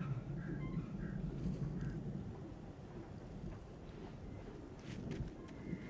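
Footsteps crunch on a wet grassy path.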